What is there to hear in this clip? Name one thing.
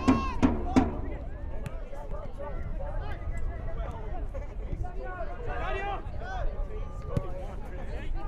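Men shout to each other across an open playing field.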